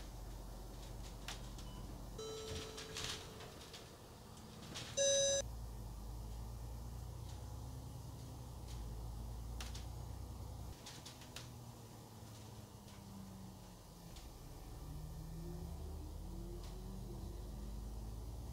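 A diesel bus engine rumbles, heard from inside the bus as it drives.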